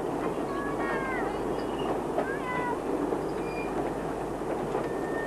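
A train's carriages rumble past on the rails close by.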